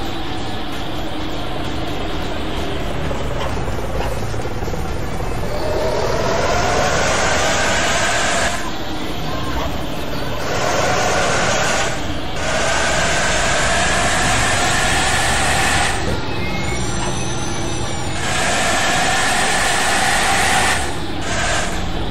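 A bus engine hums and roars, rising and falling in pitch as it speeds up and slows down.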